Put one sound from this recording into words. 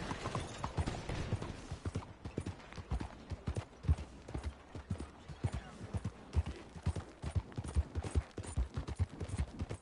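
Horse hooves gallop steadily on a dirt road.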